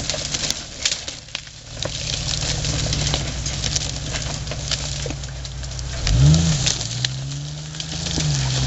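Branches and brush scrape and snap against a vehicle.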